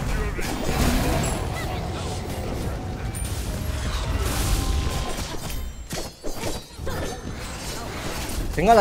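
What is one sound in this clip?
Magic blasts and impacts ring out in quick bursts.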